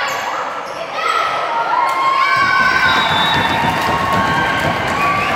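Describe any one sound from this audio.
Young women players call out to each other in a large echoing hall.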